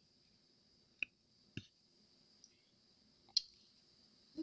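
Light plastic clicks and taps as hands handle soft moulds.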